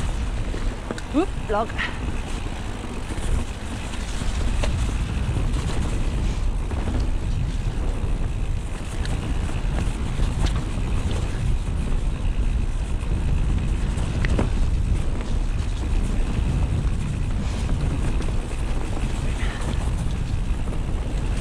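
Mountain bike tyres crunch and rumble over a dirt trail and leaves.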